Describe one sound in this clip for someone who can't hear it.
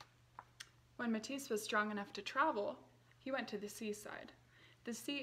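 A young woman reads a story aloud close by, in a lively voice.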